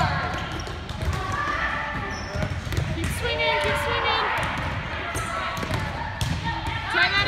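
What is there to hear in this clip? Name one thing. A volleyball is hit with hands with sharp slaps.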